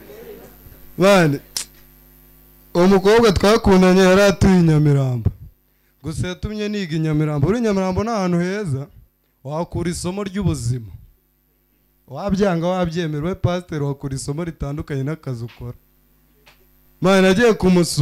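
A young man talks with animation into a microphone, heard through loudspeakers.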